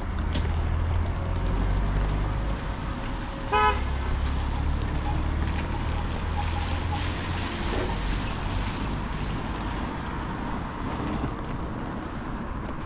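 Traffic rumbles past on a busy street outdoors.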